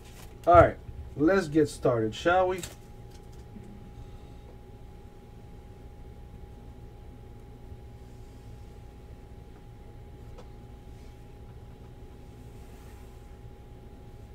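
Cards slide and tap against each other.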